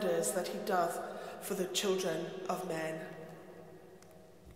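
An older woman speaks calmly through a microphone, echoing in a large hall.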